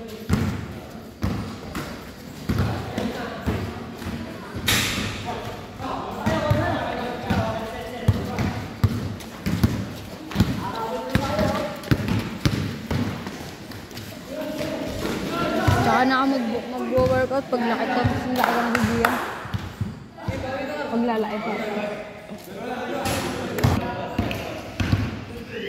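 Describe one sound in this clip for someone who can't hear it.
A basketball bounces with hollow thuds on a hard court.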